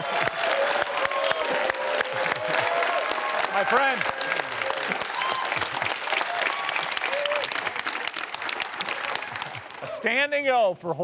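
A large audience claps and cheers loudly.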